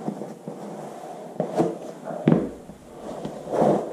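A boot heel thumps softly on a carpeted floor.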